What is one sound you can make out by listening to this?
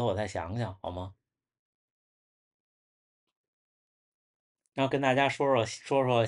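A young man talks calmly and close by, pausing between phrases.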